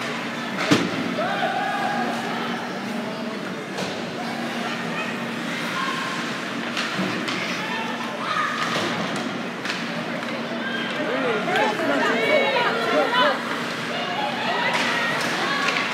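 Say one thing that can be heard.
A crowd of spectators chatters in a large echoing arena.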